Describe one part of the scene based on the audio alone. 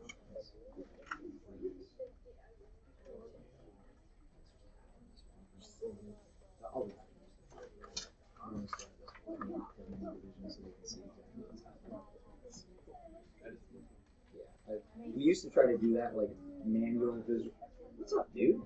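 Children chatter and talk in a room.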